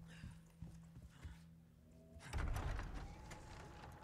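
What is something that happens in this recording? Heavy wooden doors creak and swing open.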